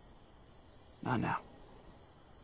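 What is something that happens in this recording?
A young man speaks quietly and briefly, close by.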